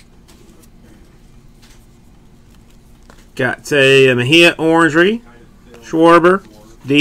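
Cardboard cards slide and rustle softly as they are flipped by hand.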